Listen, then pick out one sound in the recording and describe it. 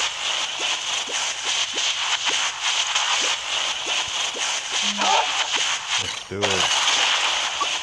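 An energy beam crackles and buzzes steadily.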